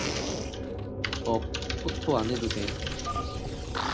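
Video game sound effects click and clatter rapidly.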